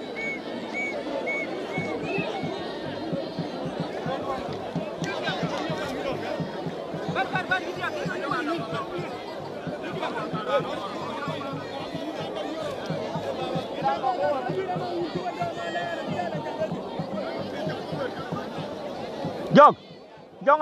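A large crowd chatters and shouts outdoors in the distance.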